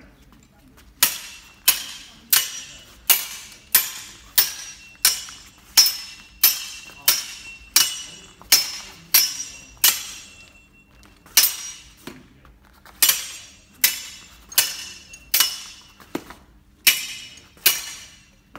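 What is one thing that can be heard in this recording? Steel swords clash and ring repeatedly in a steady rhythm.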